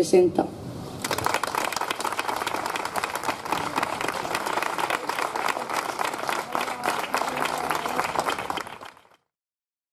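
A group of people applauds.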